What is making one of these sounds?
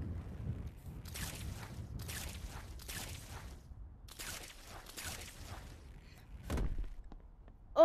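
Webs shoot out with quick hissing whooshes.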